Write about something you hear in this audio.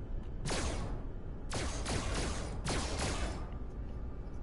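A laser gun zaps.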